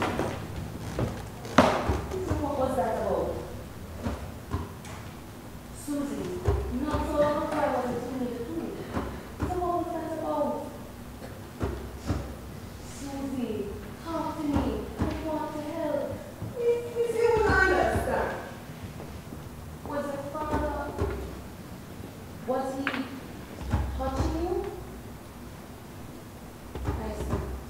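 Young women speak with feeling on a stage, heard in an echoing hall.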